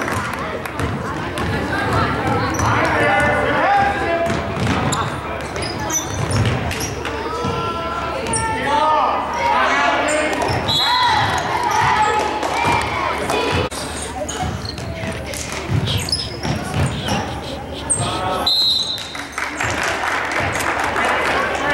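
Young girls shout and cheer close by.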